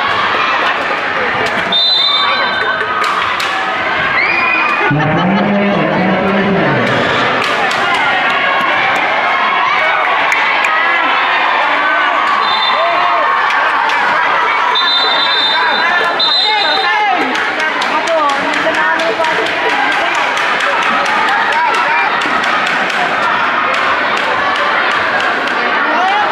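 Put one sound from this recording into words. A large crowd chatters and cheers in a big echoing hall.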